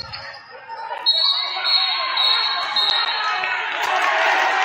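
A crowd in a large echoing gym cheers and murmurs.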